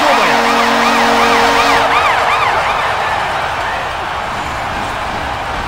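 A large crowd cheers loudly in an echoing arena.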